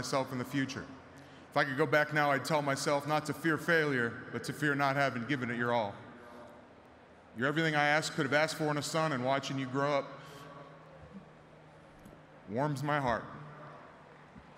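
A man speaks with emotion through a microphone in a large open space.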